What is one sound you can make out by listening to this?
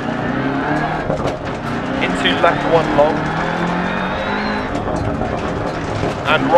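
A rally car engine roars and revs at high speed.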